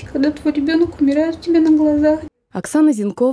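A woman speaks emotionally, close by.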